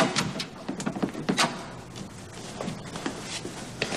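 A door opens and closes.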